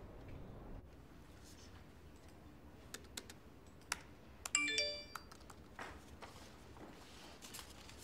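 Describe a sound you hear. Paper rustles as a woman turns pages.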